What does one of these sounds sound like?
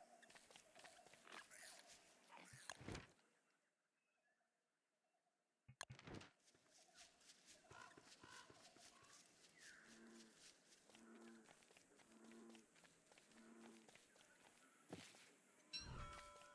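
Soft footsteps patter on grass.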